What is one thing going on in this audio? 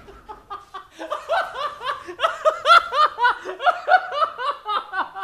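A man laughs loudly and heartily into a nearby microphone.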